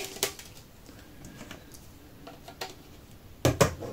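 A plastic pipe is set down on a table with a light knock.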